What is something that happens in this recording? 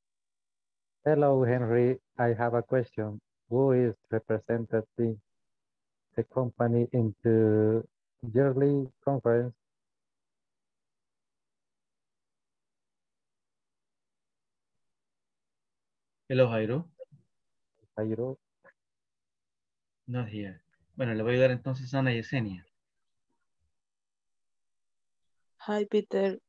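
A man speaks calmly over an online call, in bursts with long pauses.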